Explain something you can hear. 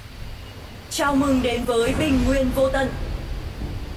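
A young woman speaks briefly and brightly into a nearby microphone.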